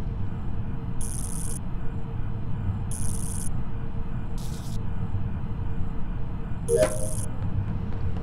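Short electronic chimes ring out one after another.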